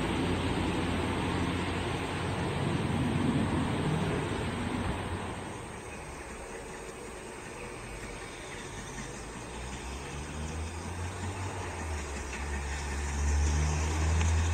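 A steam locomotive chuffs heavily as it approaches.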